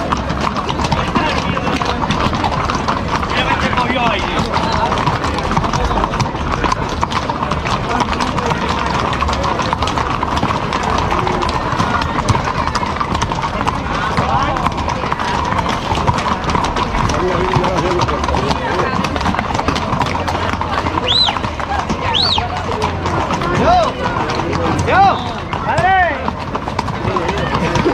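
Many horses' hooves clop on cobblestones.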